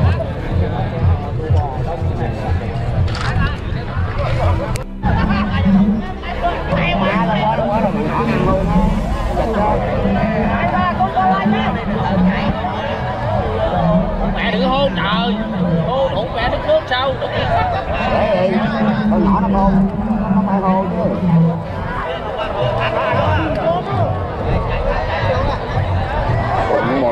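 A large outdoor crowd chatters and cheers loudly.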